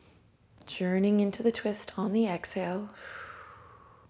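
A young woman speaks calmly and slowly close to a microphone.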